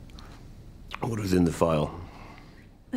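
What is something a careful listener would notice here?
A middle-aged man speaks close by in a low, weary voice.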